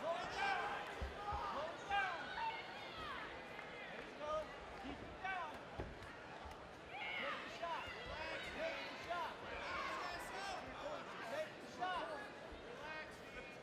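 Bodies thump on a padded mat.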